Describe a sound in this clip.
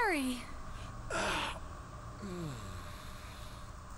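A man speaks weakly and with strain.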